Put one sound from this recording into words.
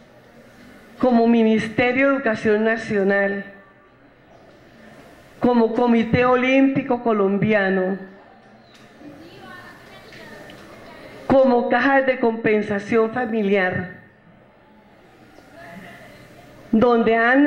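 A woman speaks with animation into a microphone, heard through loudspeakers in an echoing room, in short bursts with pauses.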